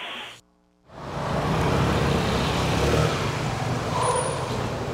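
A scooter engine hums as the scooter rolls in close by.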